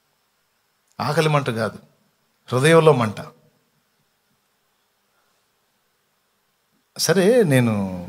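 A man speaks with feeling into a microphone, in short phrases with pauses.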